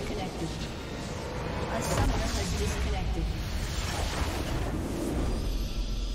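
Magic blasts and impacts crackle and boom in a game battle.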